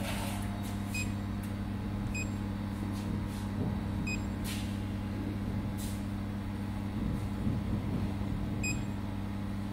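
A touchscreen beeps briefly when tapped.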